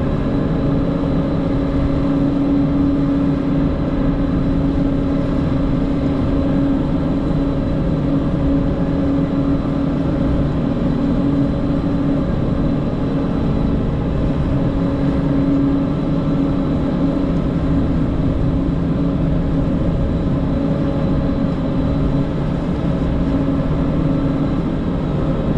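Snow churns and hisses against the blade of a snow groomer.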